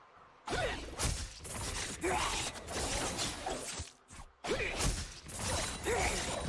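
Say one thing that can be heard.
Sharp hits thud in quick bursts.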